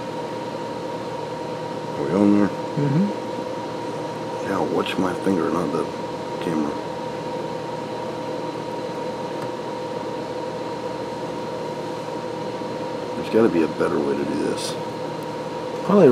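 Small scissors snip softly, close by.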